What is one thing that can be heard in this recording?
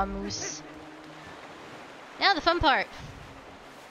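Water splashes as a character swims.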